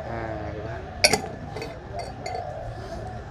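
A metal lid clicks and scrapes as it is twisted onto a glass jar.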